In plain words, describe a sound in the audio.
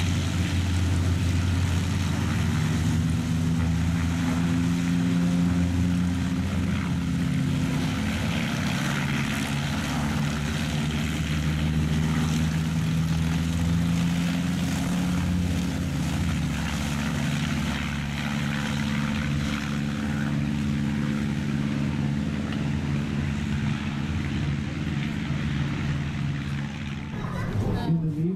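A small propeller plane's engine drones steadily in the distance.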